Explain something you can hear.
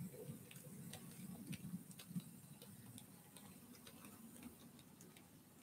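A small model train rumbles softly along its track, wheels clicking over the rail joints.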